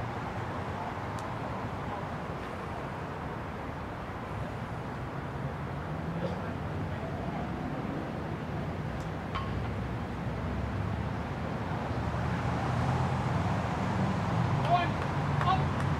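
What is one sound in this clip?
Wind rumbles across the open air.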